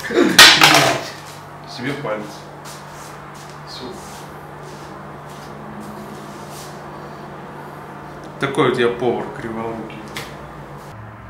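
A middle-aged man speaks close by in a casual tone.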